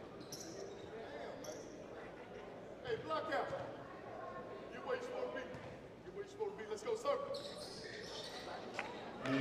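Spectators murmur and call out in an echoing gym.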